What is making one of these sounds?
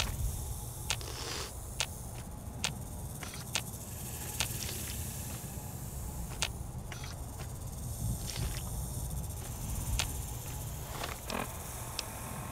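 A radiation counter clicks irregularly.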